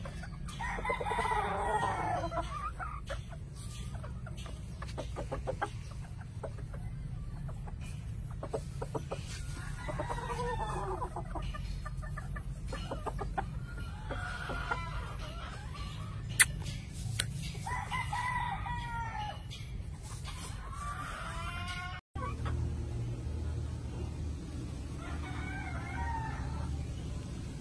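Chickens call out in loud, wavering cries now and then.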